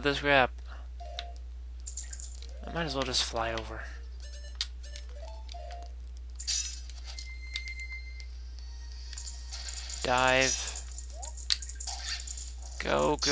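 Short electronic game effects chime and whoosh.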